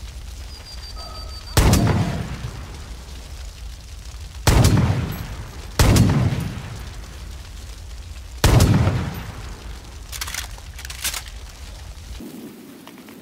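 A burning truck roars with crackling flames.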